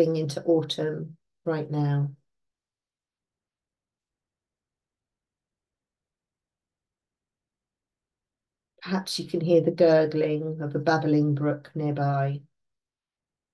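An older woman speaks calmly through a microphone, close up, with pauses.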